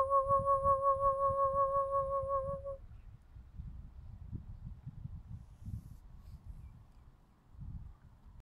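Wind buffets the microphone in gusts.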